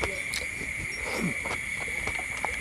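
A man slurps from a spoon.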